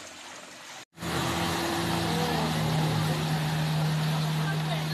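Water sprays and churns behind speeding jet skis.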